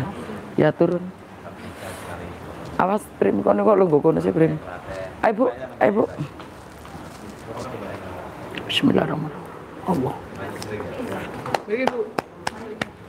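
A middle-aged woman speaks nearby in short phrases.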